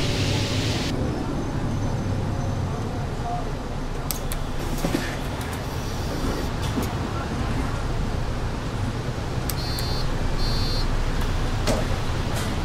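A bus engine idles with a low hum while the bus stands still.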